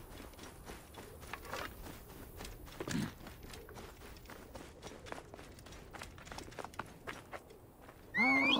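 Footsteps crunch on dry ground and gravel.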